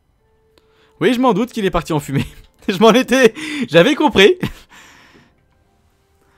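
A man laughs loudly into a close microphone.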